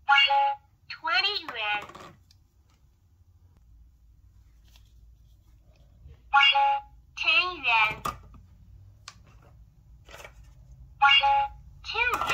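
A toy cash register plays a cheerful recorded voice through a small speaker.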